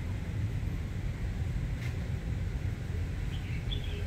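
Plant leaves rustle softly as a hand brushes them.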